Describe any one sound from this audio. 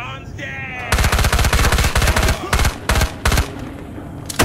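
A gun fires rapid bursts of loud shots close by.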